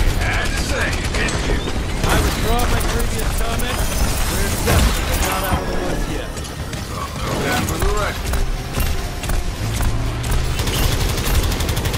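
Explosions and impacts boom.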